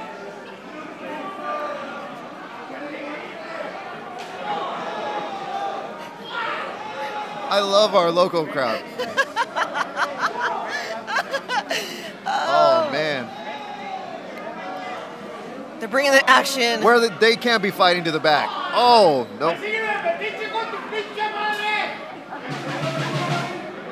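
A crowd chatters and shouts.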